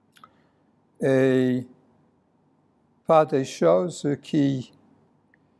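A middle-aged man speaks slowly and deliberately into a microphone, with pauses between phrases.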